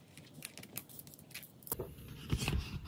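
Metal binder clips click and clatter in hands.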